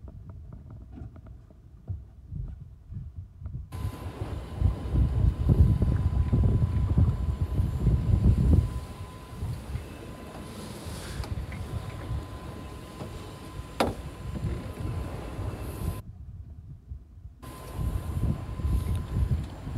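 Waves slap against a boat's hull.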